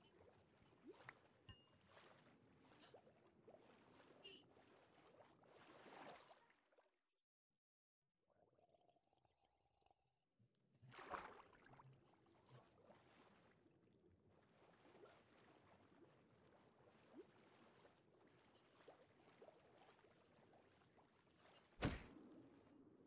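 Water murmurs and gurgles in a low, muffled underwater rumble.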